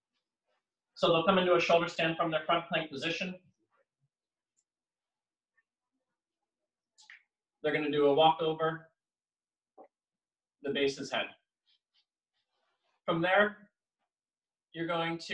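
A man talks calmly nearby, in short bursts with pauses.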